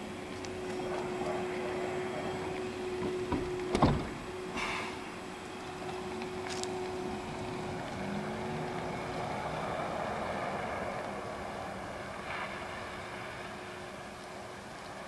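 An electric city bus whines as it pulls away and fades into the distance.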